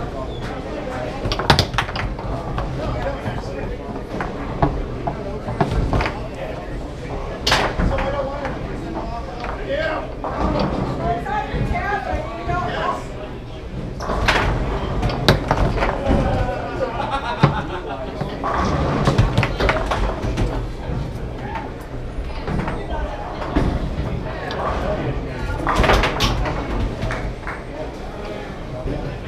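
Foosball rods rattle and spin as players jerk them.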